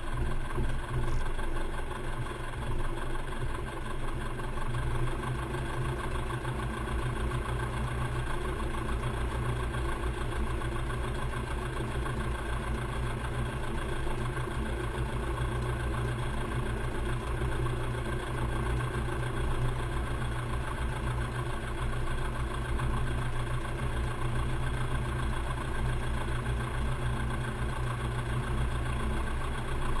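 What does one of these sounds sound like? A propeller engine drones loudly and steadily close by.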